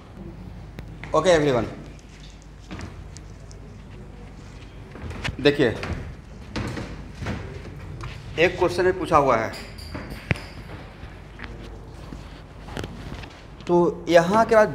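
A man speaks in short bursts through a close microphone.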